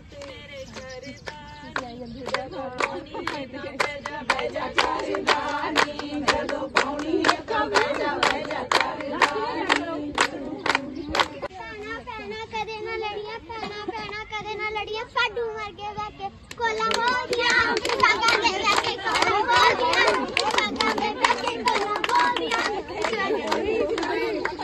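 A group of women sing together outdoors.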